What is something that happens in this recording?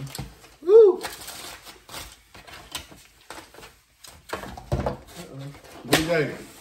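Foam food containers rustle and click on a table.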